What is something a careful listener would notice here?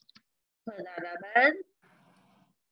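A woman speaks calmly through a microphone on an online call.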